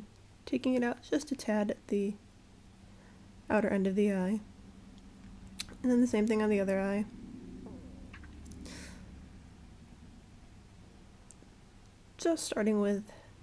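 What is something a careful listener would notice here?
A young woman talks calmly and close to a microphone, in short bursts with pauses.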